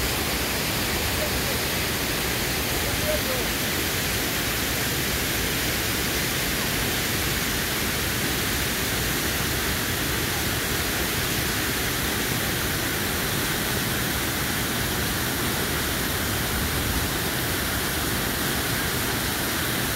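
A fast river rushes loudly over rocks nearby.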